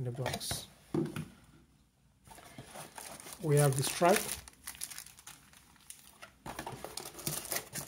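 Cardboard rubs and scrapes as hands dig through a box.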